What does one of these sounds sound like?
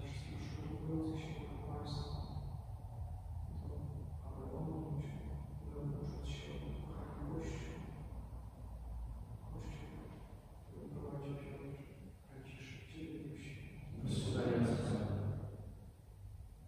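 A man speaks calmly and slowly, as if reciting a prayer, in a large echoing room.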